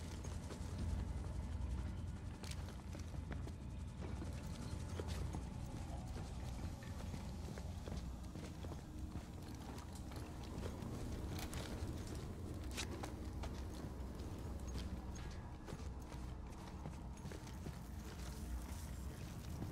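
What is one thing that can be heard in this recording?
Footsteps clank on a hard floor.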